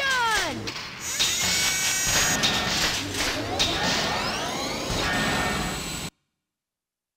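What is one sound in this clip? A jet engine roars loudly.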